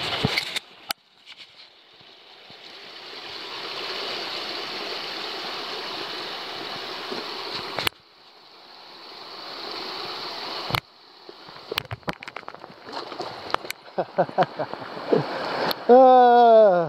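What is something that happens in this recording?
Shallow creek water babbles and rushes close by.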